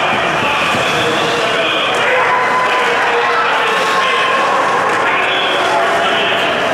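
A crowd of spectators chatters and cheers in a large echoing rink.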